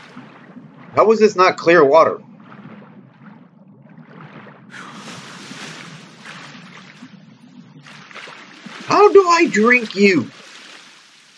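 A young man speaks loudly and with animation into a microphone.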